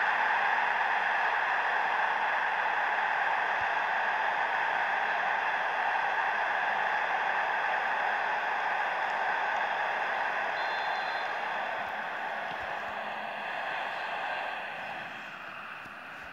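A stadium crowd roars loudly, then slowly fades.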